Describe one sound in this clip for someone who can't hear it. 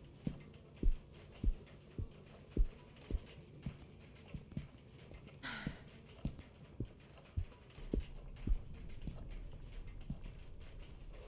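Heavy footsteps thud steadily across a wooden floor.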